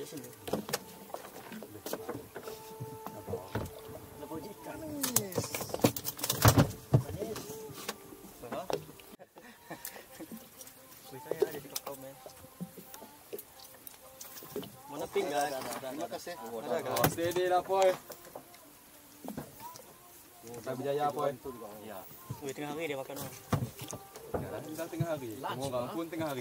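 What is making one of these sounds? Men talk and call out to each other.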